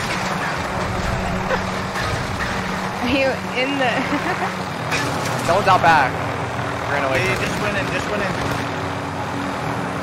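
A helicopter's rotor and engine drone steadily.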